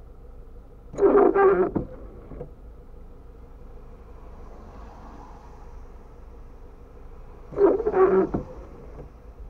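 A windscreen wiper swishes and thumps across wet glass.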